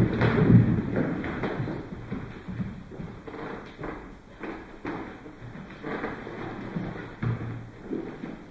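Bare feet thump and shuffle on a wooden floor in an echoing room.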